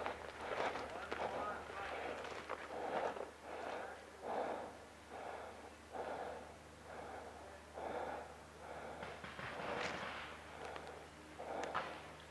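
Footsteps crunch on leaves and twigs of a forest floor.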